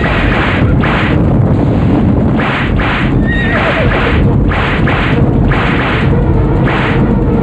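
Many horses gallop, hooves thundering on dry ground.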